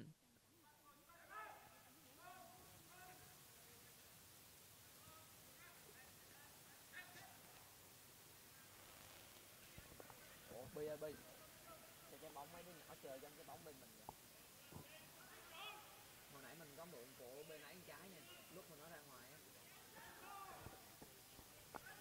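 Young men shout to each other faintly across an open field.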